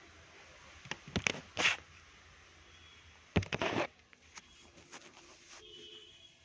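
A phone rubs and knocks against clothing close up.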